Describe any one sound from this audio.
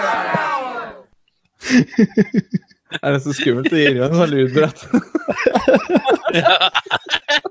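A man laughs heartily into a headset microphone.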